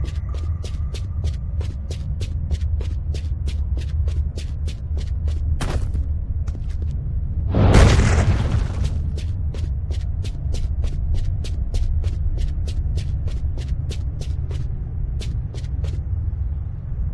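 Quick footsteps patter steadily on stone.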